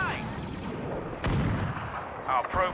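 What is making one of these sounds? A laser blast streaks and fires.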